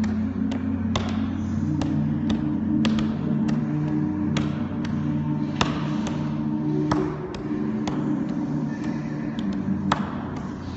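Hands slap on a wooden floor in quick, irregular taps.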